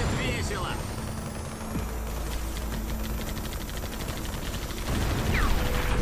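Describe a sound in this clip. A laser beam hums steadily.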